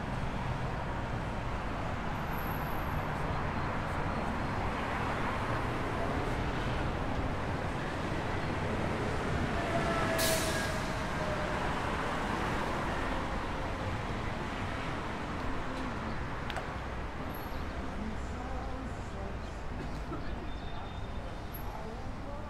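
City traffic rumbles steadily along a nearby avenue outdoors.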